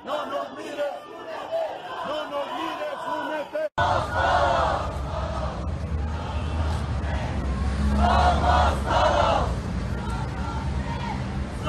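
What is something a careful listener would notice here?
A large crowd chants loudly in unison outdoors.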